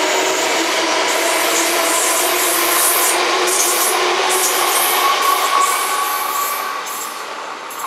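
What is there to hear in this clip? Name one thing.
An electric train rushes past close by with a loud roar and rattle of wheels on the rails.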